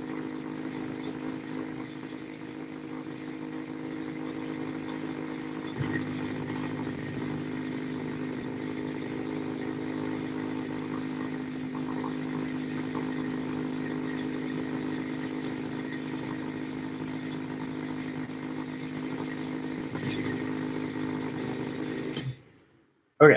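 A small electric machine hums steadily.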